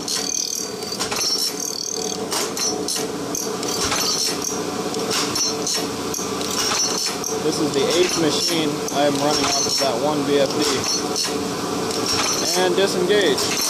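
A surface grinder runs with a steady mechanical hum and whir.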